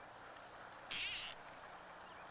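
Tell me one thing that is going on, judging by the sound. A fishing line swishes through the air.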